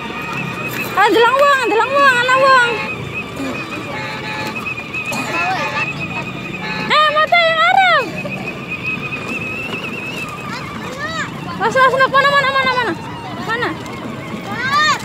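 A young child squeals and calls out loudly close by.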